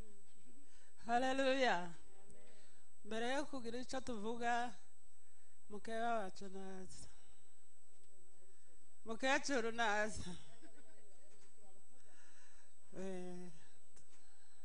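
A middle-aged woman sings through a microphone in short bursts, heard over a loudspeaker.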